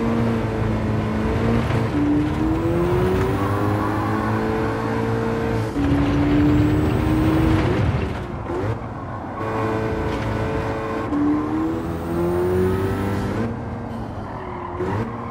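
A car engine roars steadily, climbing in pitch and dropping sharply with each gear change.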